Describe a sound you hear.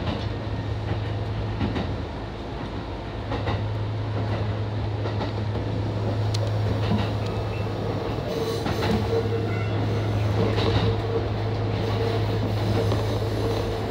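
Train wheels rumble and clack over the rails.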